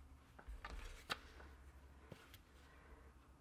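A wooden loom beater thumps softly against the weave.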